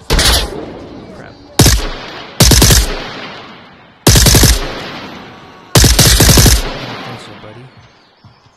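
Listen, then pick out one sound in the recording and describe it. A rifle fires rapid bursts that echo and die away.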